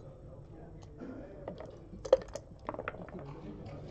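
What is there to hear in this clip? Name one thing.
Plastic checkers click against a wooden board.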